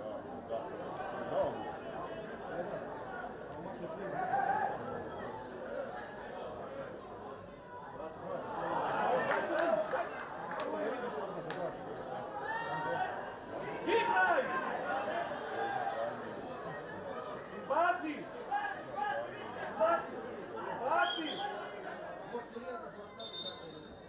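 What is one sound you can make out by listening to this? A small crowd murmurs and calls out in an open stadium.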